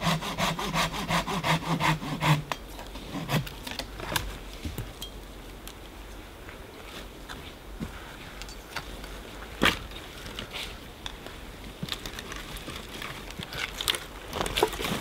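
An axe chops into a log with sharp thuds.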